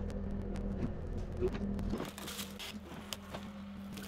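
A cut branch crashes to the ground.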